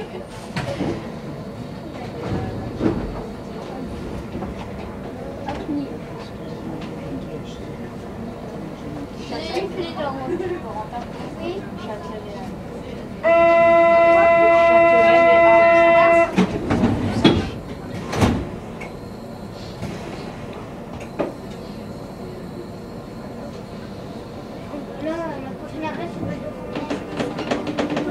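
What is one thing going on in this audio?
A train rumbles and rattles steadily along the track.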